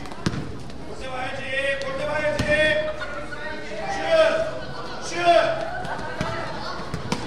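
A crowd of children cheers and shouts.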